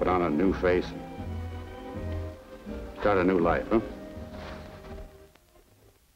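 A man speaks softly and warmly, close by.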